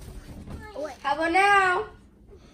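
A young boy shouts excitedly close by.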